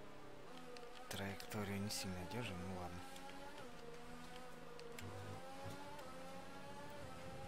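A racing car engine screams at high revs, climbing in pitch and briefly dropping with each gear change.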